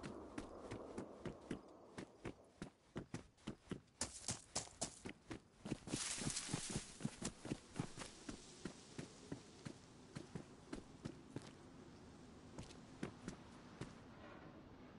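Footsteps crunch quickly over hard ground and gravel.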